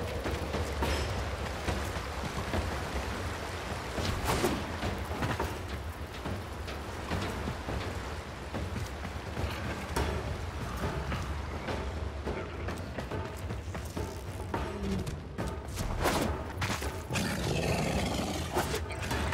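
Sharp whooshing bursts sound now and then as a figure dashes forward.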